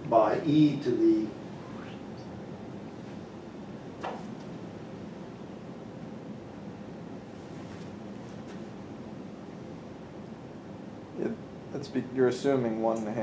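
A middle-aged man lectures calmly, pausing between phrases.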